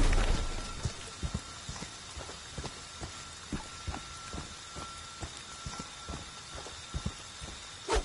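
Heavy footsteps crunch on the ground outdoors.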